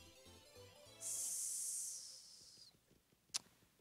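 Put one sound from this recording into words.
A bright game jingle plays as an item is collected.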